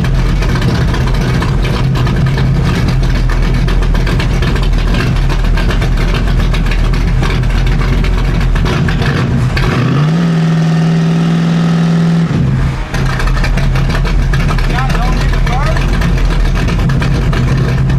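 A car engine idles with a loud, lumpy rumble close by.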